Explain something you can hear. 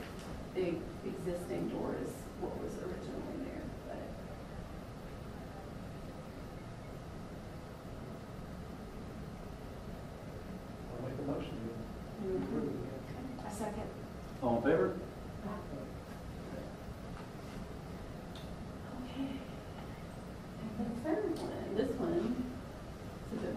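A man speaks at a distance in a quiet room, with long pauses.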